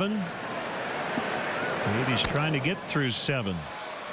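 A bat cracks against a ball.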